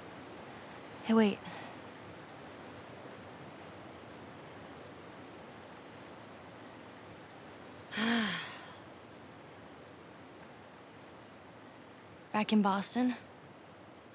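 A young girl speaks in short, hesitant phrases.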